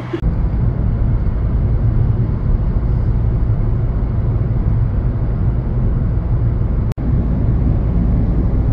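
Tyres and engine rumble steadily from inside a moving car on a motorway.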